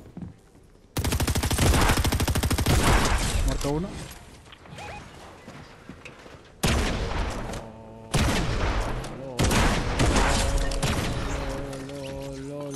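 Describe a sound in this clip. Rapid gunshots fire in bursts.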